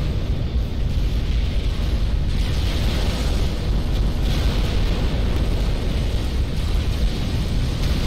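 Explosions rumble and boom without pause in a large battle.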